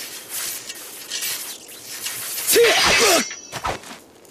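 Steel blades clash and scrape.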